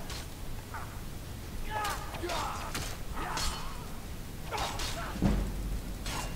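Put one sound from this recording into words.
Swords clash and clang.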